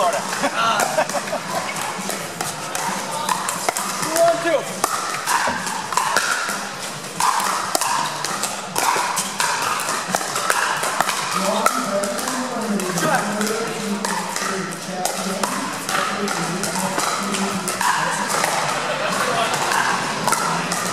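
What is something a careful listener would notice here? Paddles hit a plastic ball with sharp pops, echoing in a large hall.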